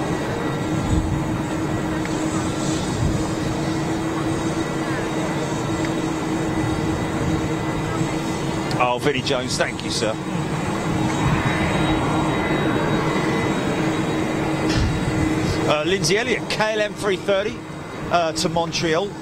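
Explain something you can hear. A tow tractor engine rumbles steadily nearby.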